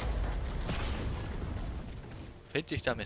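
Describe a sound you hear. Video game battle effects rumble and clash.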